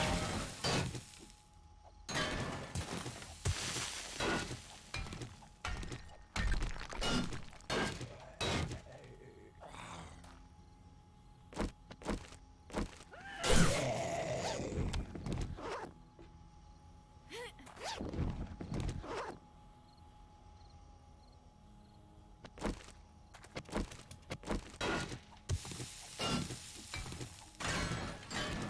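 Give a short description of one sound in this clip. A pickaxe strikes rock repeatedly with sharp knocks.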